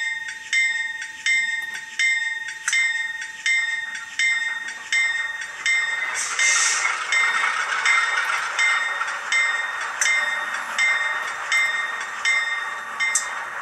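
A small electronic bell rings over and over at a steady pace from a model locomotive's tiny speaker.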